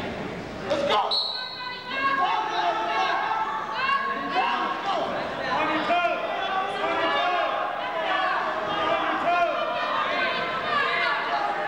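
Shoes squeak on a gym mat as wrestlers grapple.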